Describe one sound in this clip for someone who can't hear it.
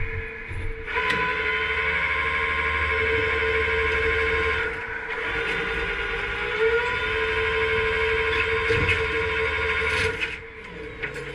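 A hydraulic motor whines loudly as a tow truck bed slides.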